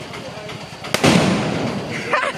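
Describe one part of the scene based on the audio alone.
A loud bang bursts out outdoors and echoes.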